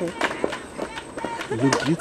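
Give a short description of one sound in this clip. A young woman laughs happily close by.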